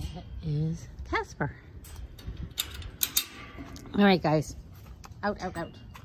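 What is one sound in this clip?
A metal gate latch clanks and rattles.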